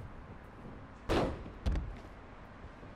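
A heavy body slams hard onto a floor.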